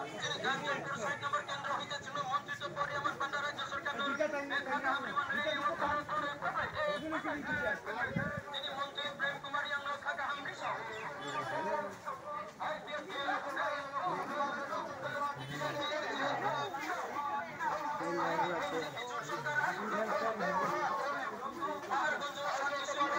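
A crowd of men chants as a procession marches past outdoors.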